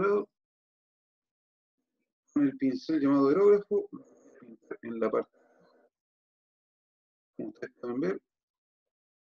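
A man talks calmly into a microphone, close by.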